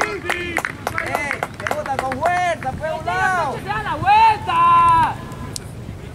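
Young men shout excitedly outdoors.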